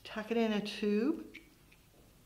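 A middle-aged woman speaks calmly and clearly close to a microphone.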